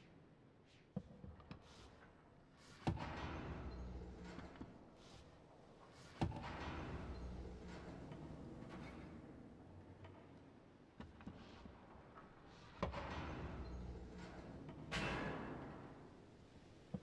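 A mechanical lift clanks and rumbles as it moves.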